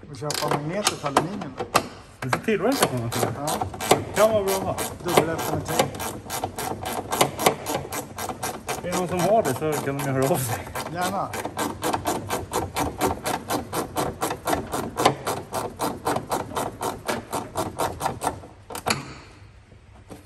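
A hand tool clicks rapidly against metal.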